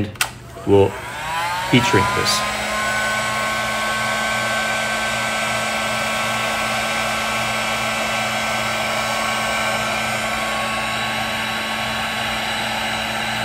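A heat gun whirs and blows steadily.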